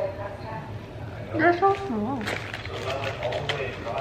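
A young woman crunches a crisp.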